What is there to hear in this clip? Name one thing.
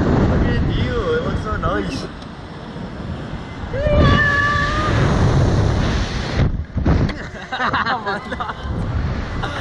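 Another young man laughs and screams excitedly, close by.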